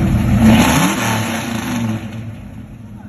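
A 1966 Mustang's engine revs.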